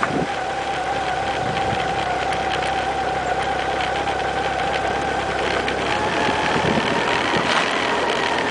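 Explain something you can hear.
A motorcycle engine hums steadily up close as it rides.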